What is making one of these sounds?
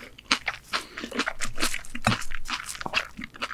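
Crispy ramen pizza crust crackles as it is torn apart by hand close to a microphone.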